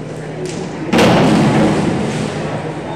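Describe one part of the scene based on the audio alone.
A diver hits the water with a loud splash.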